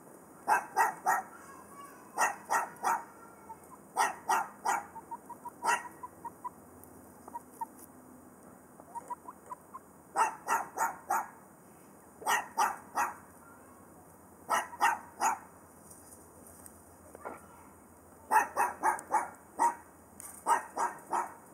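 Chickens cluck loudly in short bursts close by.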